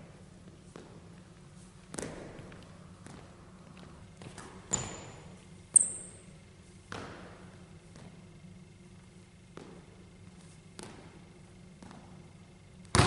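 A basketball bounces on a hard floor, echoing through a large hall.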